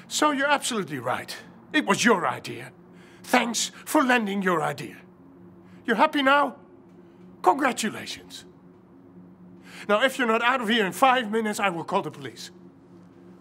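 A middle-aged man speaks tensely, close by.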